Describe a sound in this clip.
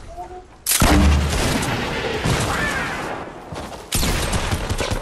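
Gunshots and explosions ring out in a video game.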